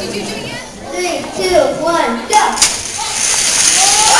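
Children cheer and shout.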